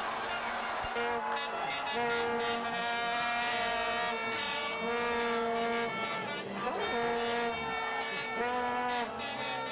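A plastic horn blares in long droning blasts.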